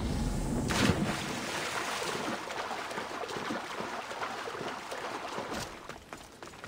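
Water swishes and splashes as a swimmer strokes along.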